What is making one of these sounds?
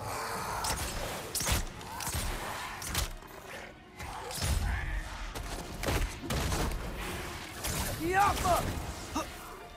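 An arrow twangs from a bow.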